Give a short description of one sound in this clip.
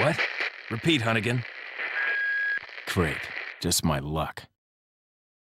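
A young man speaks calmly over a radio.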